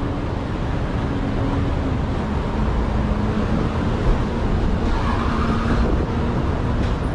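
City traffic rumbles steadily nearby, outdoors.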